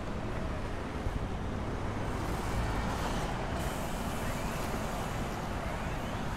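A bus drives past.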